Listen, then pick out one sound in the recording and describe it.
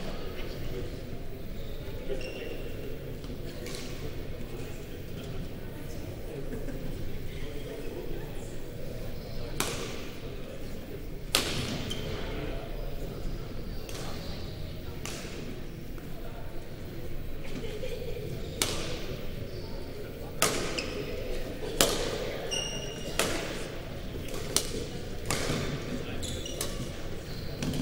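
A murmur of voices echoes around a large hall.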